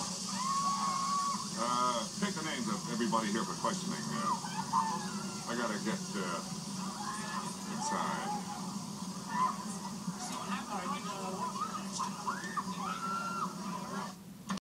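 An elderly man speaks calmly, heard through a loudspeaker.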